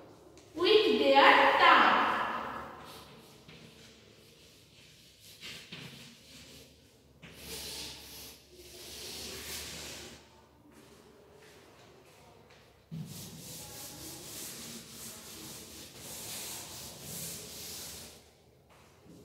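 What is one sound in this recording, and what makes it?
Chalk scratches and taps on a chalkboard.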